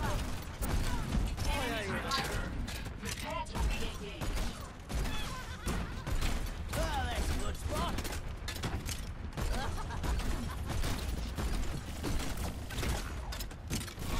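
A game's automatic weapon fires in rapid bursts.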